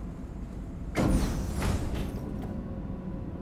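Elevator doors slide shut with a heavy thud.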